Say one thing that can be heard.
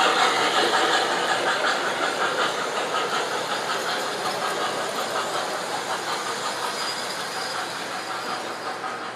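A model train clatters steadily along its tracks, slowly fading as it moves away.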